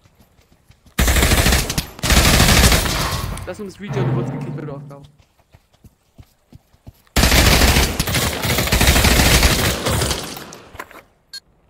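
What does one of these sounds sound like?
Rifle shots fire in loud bursts.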